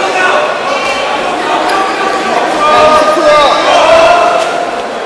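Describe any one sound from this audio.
A crowd of people chatter and call out in a large echoing hall.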